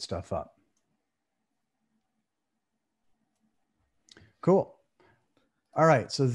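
An older man speaks calmly into a close microphone, in short bursts with pauses.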